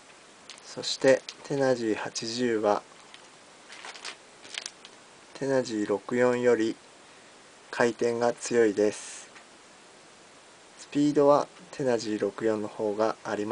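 A plastic packet crinkles as it is handled.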